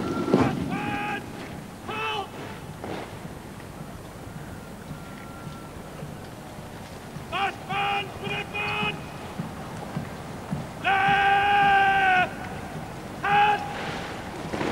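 A military band plays short, loud brass notes in the distance.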